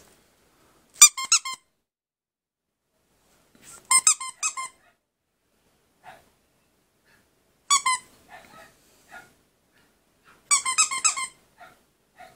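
A puppy whimpers in short, high-pitched yelps.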